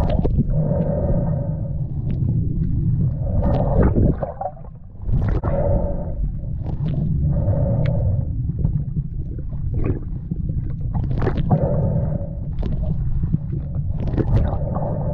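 Water churns and rumbles close to the microphone underwater.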